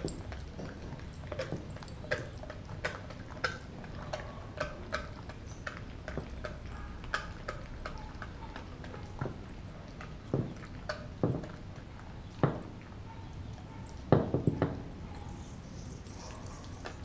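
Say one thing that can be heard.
A dog chews and gnaws on a bone with wet crunching.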